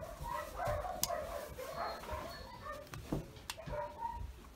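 Nail clippers snip sharply.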